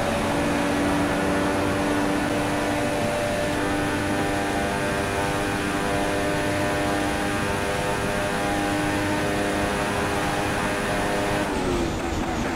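A Formula One car's engine screams at high revs.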